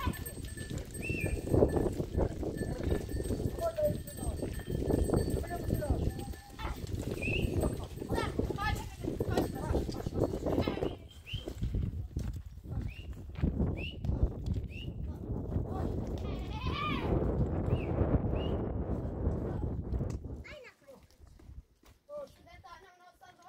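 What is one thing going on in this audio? Goats bleat in a herd.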